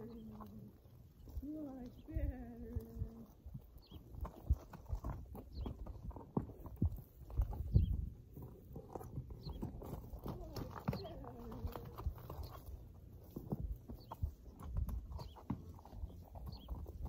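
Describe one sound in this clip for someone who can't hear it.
A horse's hooves thud on dirt as it walks.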